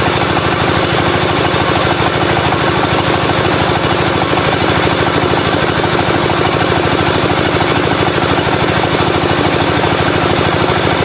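A motorised grain machine runs with a loud, steady hum and rapid rattle.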